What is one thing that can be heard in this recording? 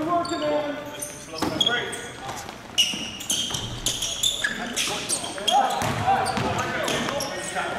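Sneakers squeak sharply on a gym floor in a large echoing hall.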